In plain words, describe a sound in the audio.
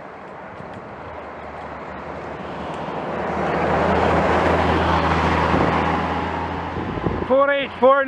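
A coach approaches and roars past close by.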